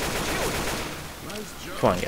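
A rifle clicks and clatters as it is reloaded.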